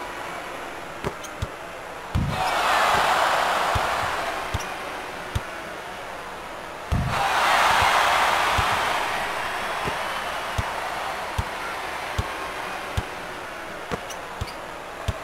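A basketball bounces steadily on a wooden court.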